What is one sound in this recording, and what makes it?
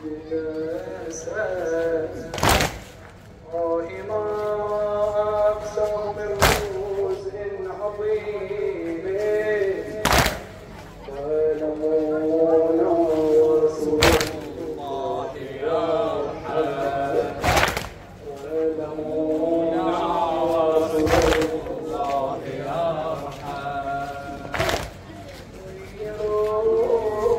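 A crowd of men chants together in a loud chorus outdoors.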